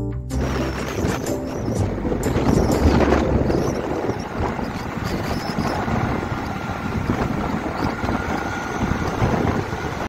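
Tyres roar steadily on a road as a vehicle drives along at speed.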